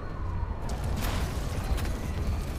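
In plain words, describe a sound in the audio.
An explosion bursts with a loud crackling roar.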